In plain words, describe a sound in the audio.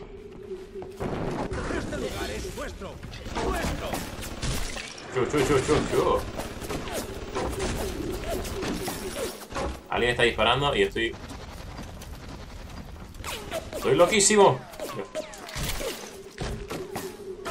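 A young man talks with animation, close into a microphone.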